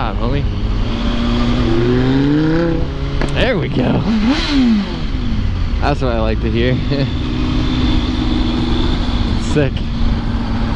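A sports car engine roars and revs loudly nearby.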